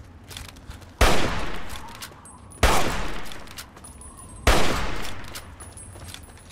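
A rifle fires loud single shots, each followed by a rolling echo.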